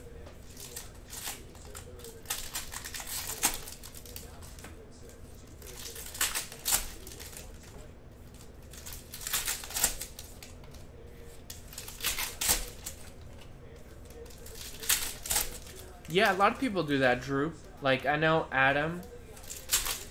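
Foil packs crinkle and tear as they are ripped open.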